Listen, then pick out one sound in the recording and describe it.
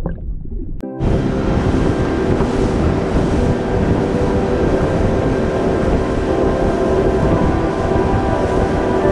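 A boat engine drones steadily as the boat speeds across open water.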